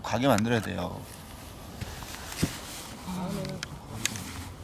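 A man speaks briefly nearby, outdoors.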